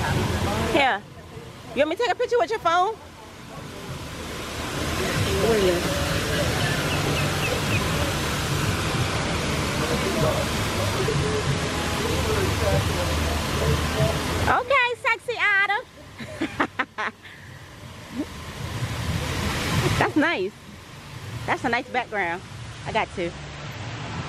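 A middle-aged woman talks nearby.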